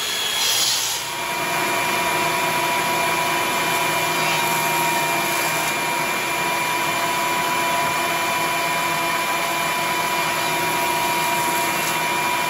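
A benchtop router table whines as it cuts a board of wood.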